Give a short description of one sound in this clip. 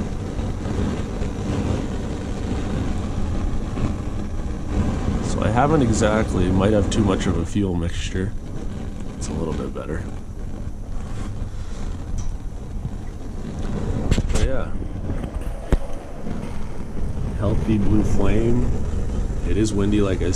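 Gas burners roar steadily close by.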